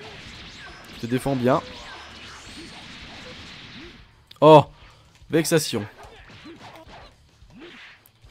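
Punches and energy blasts thud and crackle in a fast fight.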